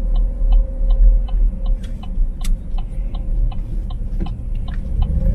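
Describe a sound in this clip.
A car engine hums steadily with a low rumble from inside the car.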